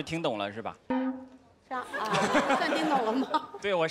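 A woman speaks with amusement.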